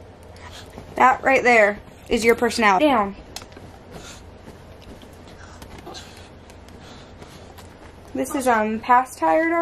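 A young girl sings and squeals loudly, close by.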